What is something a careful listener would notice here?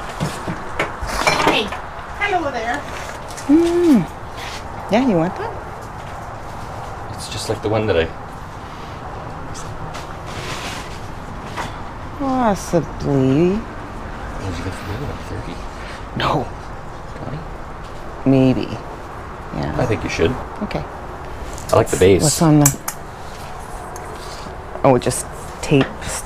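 A man speaks casually close by, asking questions.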